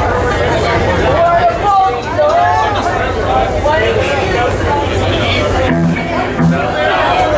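An electric guitar plays a bending lead melody.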